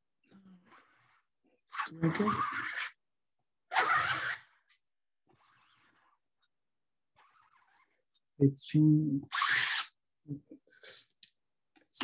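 A sponge dabs paint onto fabric with soft pats.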